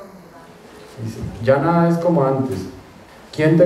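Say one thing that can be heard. A young man reads out calmly into a microphone.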